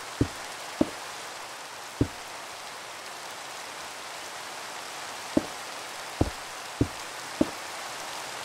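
Stone blocks thump softly as they are placed, one at a time.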